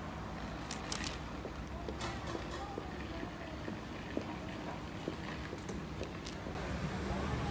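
Paper wrapping rustles and crinkles close by.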